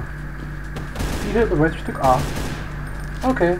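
A gun fires loud, sharp shots.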